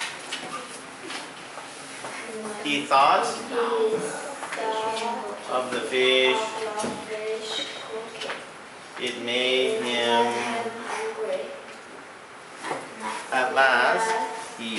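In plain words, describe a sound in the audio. A young girl reads aloud slowly into a microphone, heard through a loudspeaker in an echoing room.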